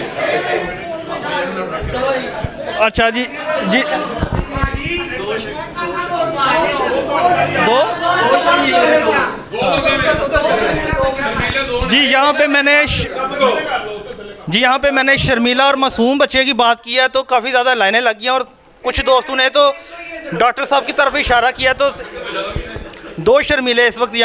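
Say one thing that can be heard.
A young man speaks with animation through a microphone in a small echoing room.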